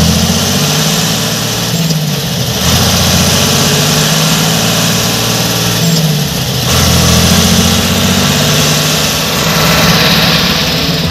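A tractor engine rumbles steadily and loudly close by, its pitch rising and falling slightly.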